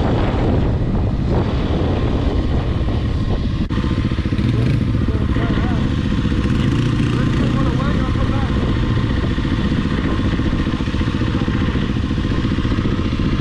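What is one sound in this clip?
Wind buffets a helmet microphone.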